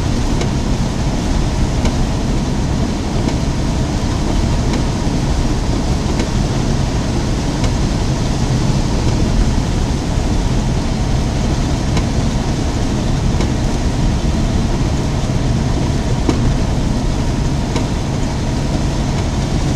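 Windshield wipers thump across the glass at intervals.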